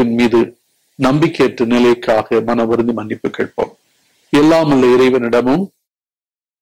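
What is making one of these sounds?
An elderly man speaks slowly and solemnly into a microphone.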